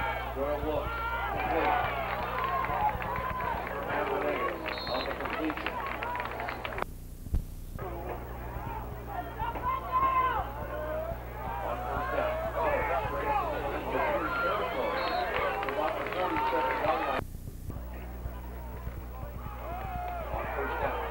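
A crowd of spectators cheers and chatters loudly outdoors.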